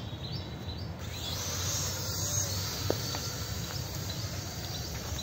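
A small toy drone's propellers whir as it flies.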